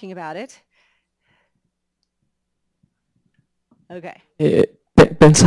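A middle-aged woman speaks into a microphone in short bursts, with a pause between them.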